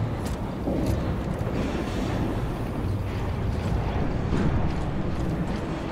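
Heavy boots clank on a metal grating.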